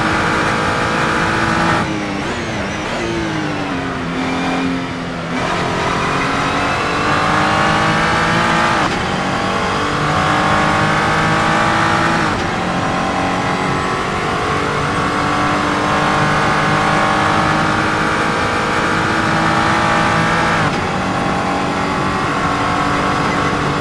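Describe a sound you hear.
A racing car engine roars loudly, dropping in pitch on downshifts and climbing steadily through the gears.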